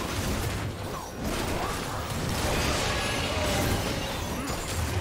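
Game spell effects crackle and blast during a fight with a large monster.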